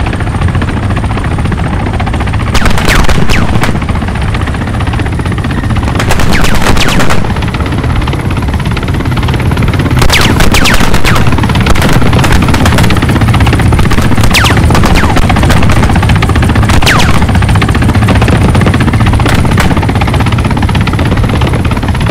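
A helicopter's rotor thumps loudly overhead as it flies close by.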